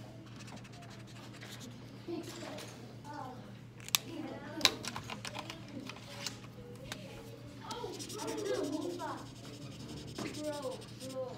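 A marker rubs and squeaks across paper.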